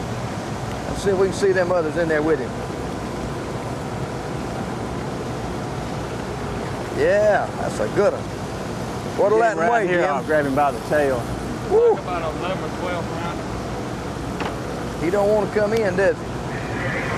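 A man talks loudly and excitedly close by, outdoors on the water.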